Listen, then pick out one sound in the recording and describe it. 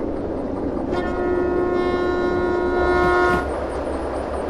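A locomotive horn sounds a long steady blast.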